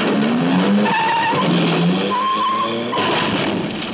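Tyres skid on a dirt road.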